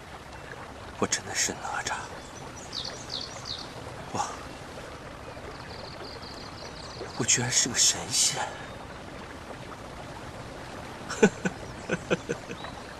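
A young man speaks in short, strained bursts close by.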